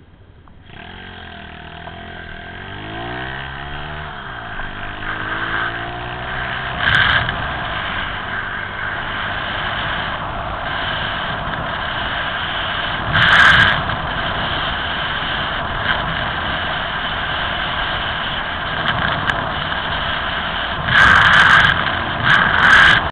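Wind rushes loudly past, as if riding fast outdoors.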